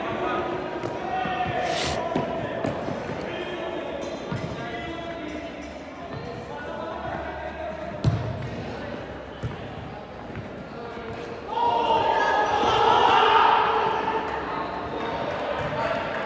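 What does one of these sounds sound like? Men shout and call out to each other during play.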